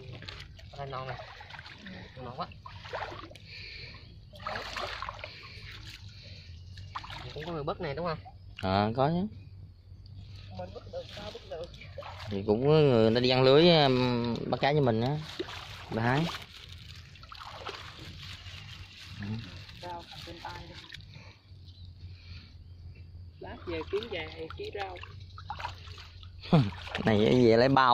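Shallow water splashes and sloshes.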